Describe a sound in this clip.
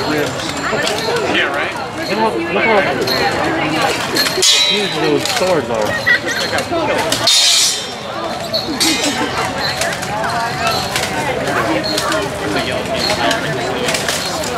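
Men and women talk nearby in a crowd outdoors.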